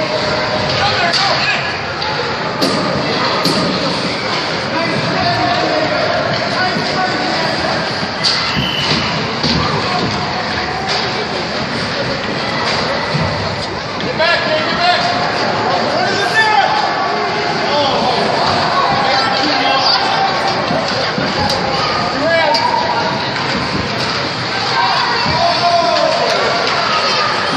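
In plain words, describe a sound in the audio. Hockey sticks clack against the puck and the ice.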